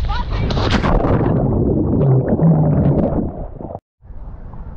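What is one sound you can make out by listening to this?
Water churns and bubbles around a swimmer.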